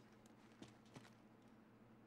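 Footsteps tap on a stone floor.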